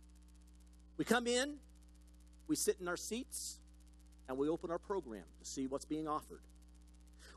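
A man speaks calmly through a microphone, with pauses between phrases.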